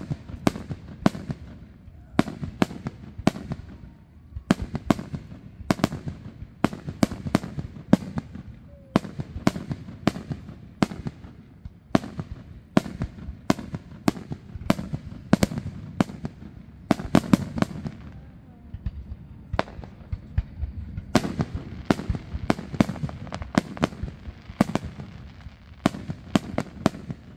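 Fireworks burst with sharp, rapid bangs that echo and rumble.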